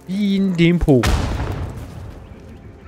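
An arrow strikes a creature with a heavy thud.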